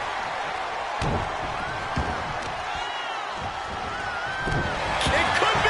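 Heavy bodies thud onto a wrestling mat.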